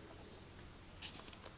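A pen scratches briefly on paper.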